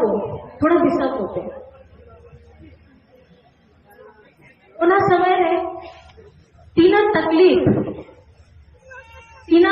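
A woman speaks forcefully into a microphone through a loudspeaker outdoors, in bursts with pauses.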